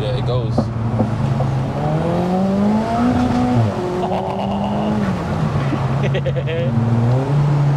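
A car engine hums steadily, rising and falling in pitch as it changes gear.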